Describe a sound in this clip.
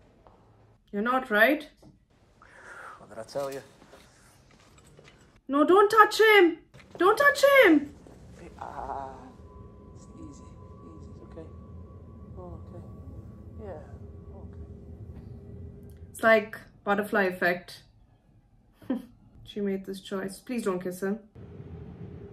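A young woman speaks up close into a microphone, with animation.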